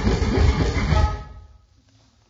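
A violin plays a loud final note and stops.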